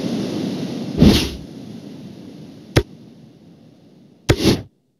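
A game menu clicks.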